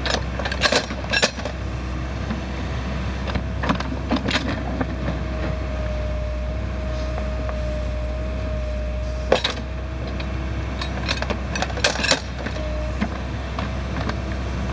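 A backhoe's diesel engine rumbles steadily close by.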